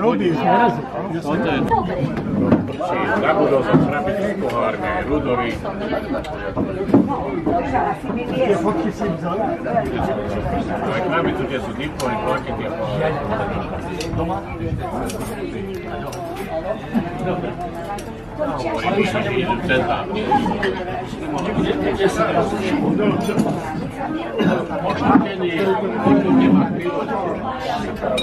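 Many elderly men and women chat at once outdoors.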